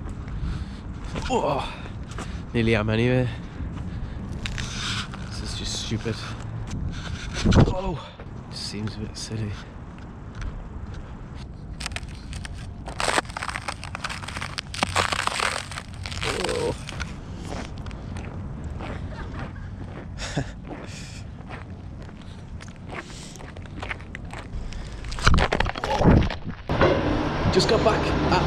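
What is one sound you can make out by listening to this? A young man talks calmly, close to the microphone.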